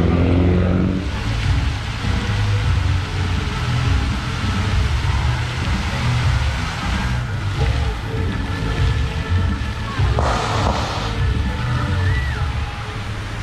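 Fountain water jets splash into a pool.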